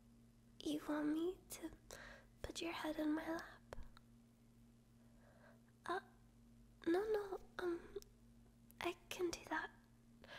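A young woman speaks softly and intimately, close to a microphone.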